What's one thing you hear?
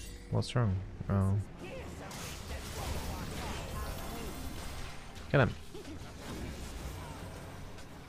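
Game sound effects play, with spell bursts and hits.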